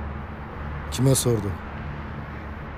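A man asks a short question quietly.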